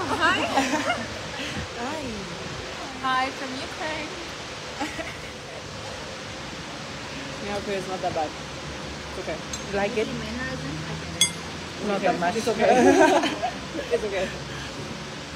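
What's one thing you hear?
A young woman talks cheerfully, close by.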